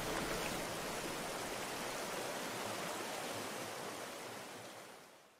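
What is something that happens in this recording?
Water flows and splashes steadily nearby.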